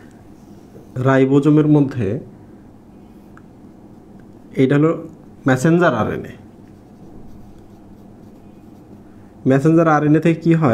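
A man speaks calmly, as if explaining, close by.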